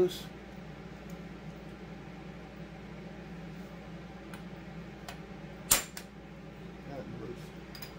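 Small metal parts click and clink.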